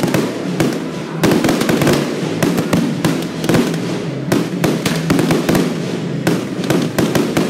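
Fireworks burst and crackle in rapid bangs outdoors.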